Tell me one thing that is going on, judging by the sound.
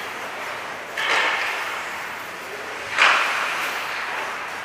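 Skate blades scrape across the ice in a large echoing rink.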